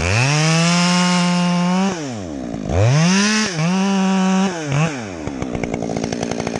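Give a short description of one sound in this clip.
A chainsaw cuts through a tree trunk at full throttle.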